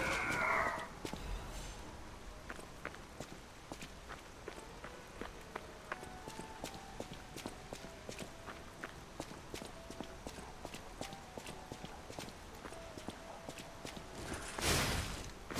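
Footsteps tap steadily on stone pavement.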